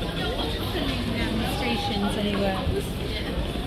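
A woman speaks briefly up close as she passes.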